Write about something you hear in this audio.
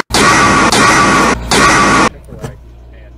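A loud electronic screech blares.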